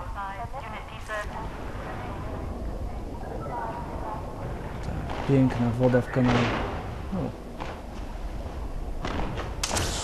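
Water gurgles and bubbles, muffled as if heard underwater.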